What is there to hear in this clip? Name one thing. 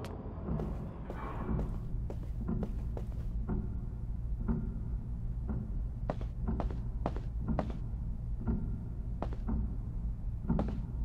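Footsteps tap steadily across wooden floorboards.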